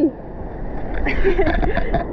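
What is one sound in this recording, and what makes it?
A young woman laughs close up.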